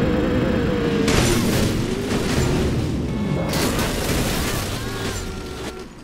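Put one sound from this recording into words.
A car crashes and tumbles over with heavy thuds.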